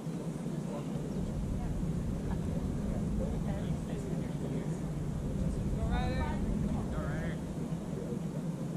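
Wind rumbles across an open field.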